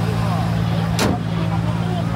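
A car hood slams shut.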